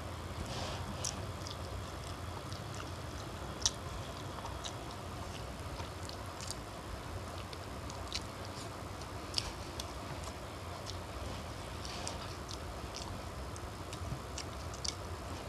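A boy and a young woman chew food close by.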